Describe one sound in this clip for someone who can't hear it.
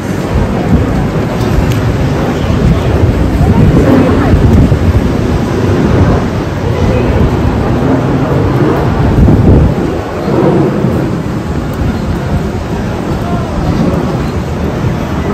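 Strong wind gusts and roars outdoors.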